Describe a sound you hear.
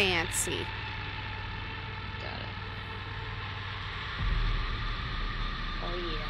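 A young girl speaks briefly into a microphone.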